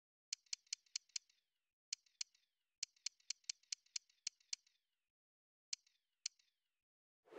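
Short sharp menu clicks tick in quick bursts.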